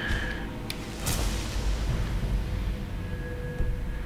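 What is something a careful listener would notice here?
A bright magical chime rings out and fades.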